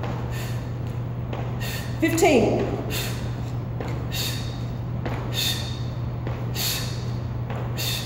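Feet thud on a hard floor as a woman jumps.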